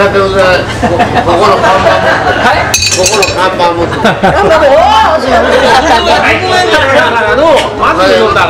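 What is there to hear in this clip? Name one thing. A crowd of people chatter and laugh in a busy room.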